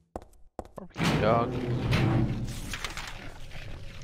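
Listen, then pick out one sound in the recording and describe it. A heavy door opens with a loud creak and rumble.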